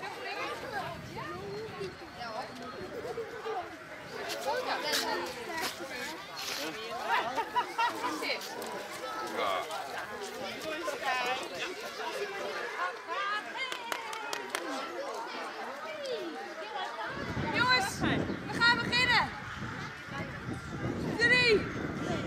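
Small children chatter and squeal nearby.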